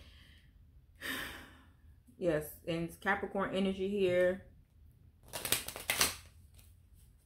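Cards shuffle and riffle in hands.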